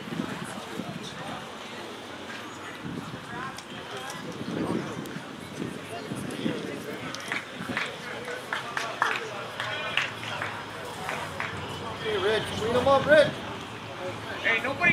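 Young men chatter and call out to each other outdoors nearby.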